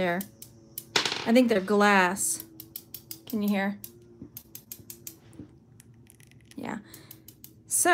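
Long fingernails tap and click against each other close up.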